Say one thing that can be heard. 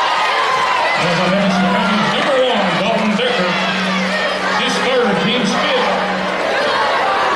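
A buzzer sounds loudly.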